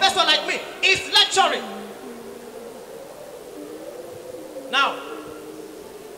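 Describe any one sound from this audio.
A young man speaks loudly into a microphone, heard through loudspeakers in an echoing hall.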